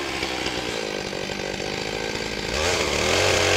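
A chainsaw idles with a low rattling putter.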